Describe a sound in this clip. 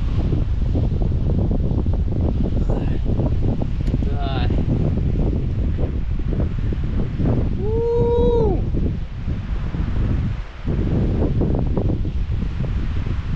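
Wind buffets loudly outdoors high on a cliff.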